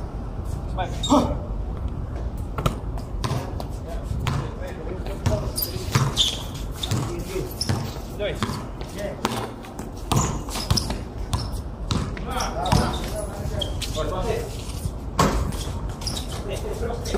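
A basketball bounces on a hard court with sharp thuds.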